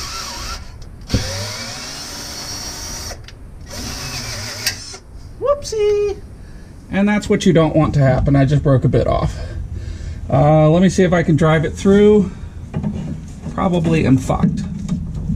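Metal tools clink and scrape against a car's underside.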